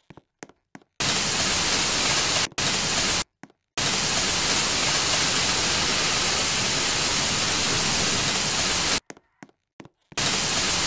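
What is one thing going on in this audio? A fire hose sprays water with a loud steady hiss.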